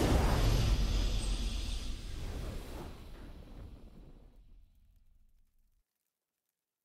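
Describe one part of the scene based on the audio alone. A triumphant game victory fanfare plays and slowly fades away.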